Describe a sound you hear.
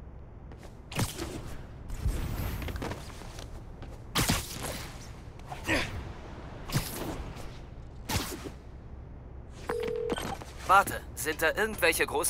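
Quick whooshes rush past as a figure swings through the air.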